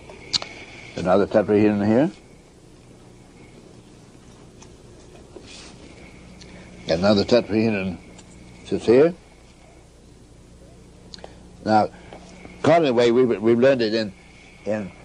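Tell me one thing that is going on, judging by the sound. An elderly man speaks close by in short bursts with long pauses.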